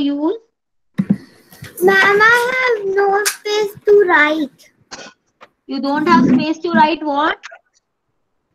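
A young girl speaks calmly over an online call.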